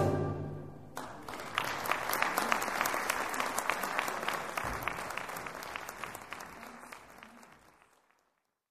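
An audience applauds in a large hall, then dies away.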